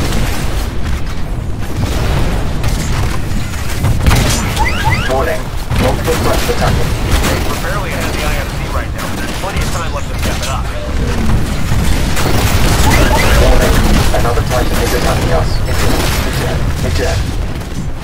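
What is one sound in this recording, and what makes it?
Heavy guns fire in rapid bursts.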